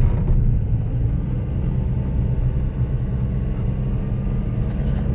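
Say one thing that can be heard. A car engine hums with a low steady rumble from inside the car.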